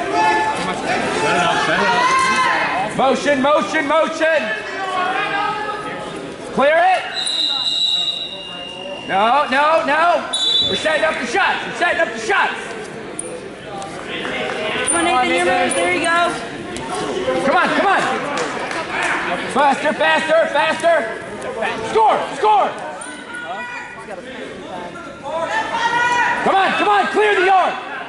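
Wrestlers' shoes squeak on the mat.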